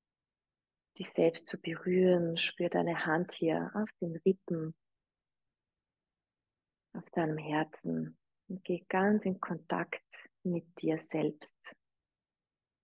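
A woman speaks calmly and gently through a microphone, close by.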